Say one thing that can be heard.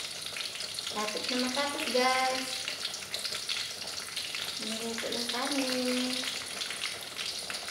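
A spoon stirs and scrapes inside a metal pot.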